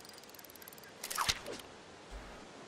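A fishing line whizzes out as a rod is cast.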